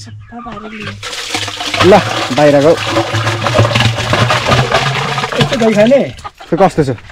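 Liquid pours and splashes into a wooden barrel.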